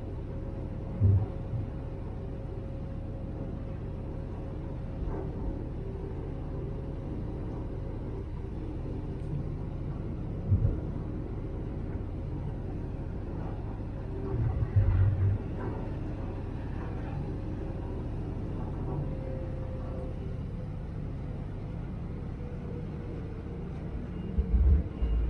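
Wind gusts buffet outdoors.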